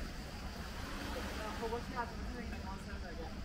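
Distant voices of swimmers call out now and then outdoors.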